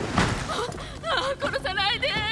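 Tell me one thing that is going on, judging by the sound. A young woman speaks pleadingly, close by.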